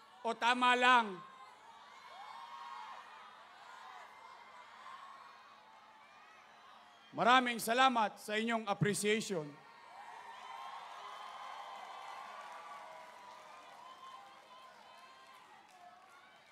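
A crowd cheers and murmurs.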